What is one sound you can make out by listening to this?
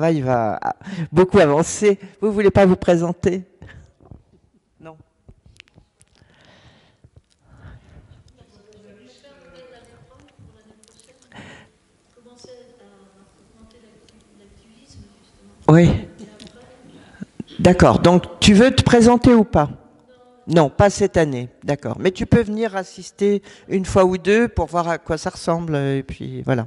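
An elderly man speaks into a microphone, heard through loudspeakers in a large room.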